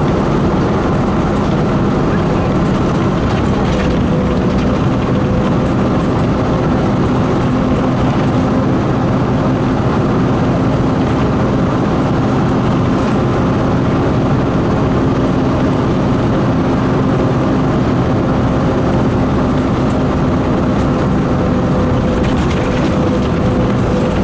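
A vehicle engine hums and rumbles steadily from inside a moving vehicle.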